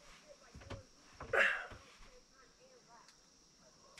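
Bedding rustles as a man sits up.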